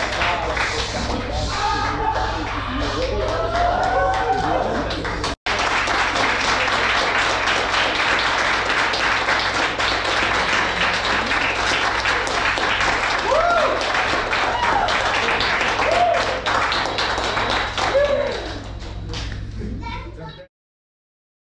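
A group of people cheer and shout excitedly.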